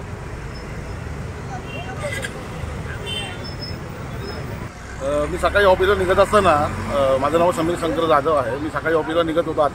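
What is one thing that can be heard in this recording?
Traffic hums along a road outdoors.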